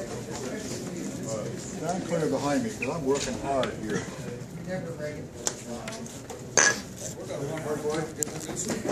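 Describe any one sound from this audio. Several men talk calmly nearby in a room.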